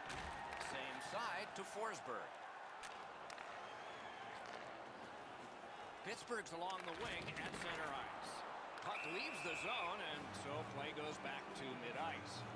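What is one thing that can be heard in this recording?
Hockey skates scrape and carve on ice.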